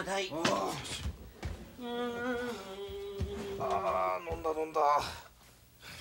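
A man groans and speaks in a strained voice close by.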